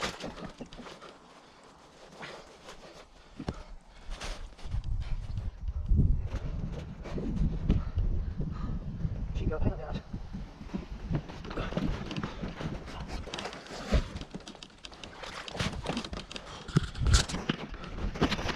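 Thick mud squelches and sucks as a person pushes through it.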